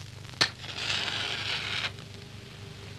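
A lighter clicks and its flame hisses briefly.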